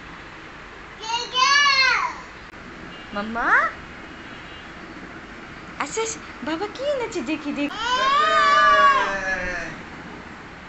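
A toddler girl squeals and babbles loudly close by.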